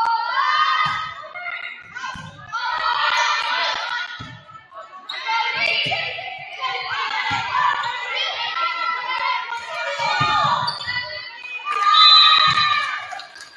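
A volleyball is struck with dull thumps.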